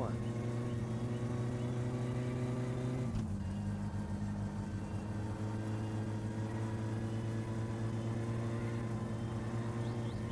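A car engine drones steadily at high revs.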